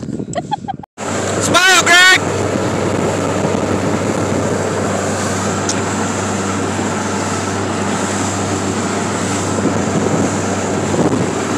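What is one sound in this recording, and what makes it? Water rushes past a speeding motorboat's hull.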